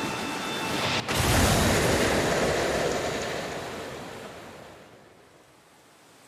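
A loud explosion bursts and roars, then slowly fades.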